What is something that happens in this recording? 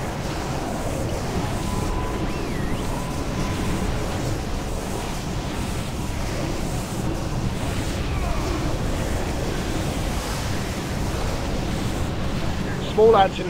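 Magic spells crackle and boom in a busy fantasy battle.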